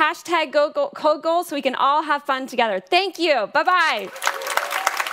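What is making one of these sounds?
A young woman speaks with animation through a microphone in a large hall.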